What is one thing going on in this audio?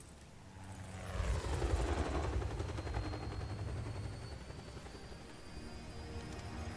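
A helicopter hovers nearby with a deep, throbbing rotor rumble.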